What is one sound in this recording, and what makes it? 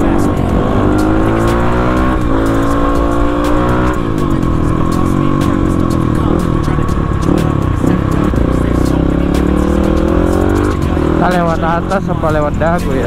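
A motorcycle engine roars up close, its pitch rising and falling as it speeds up and slows down.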